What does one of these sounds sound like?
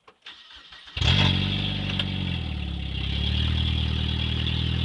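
A car engine starts and then idles with a steady rumble.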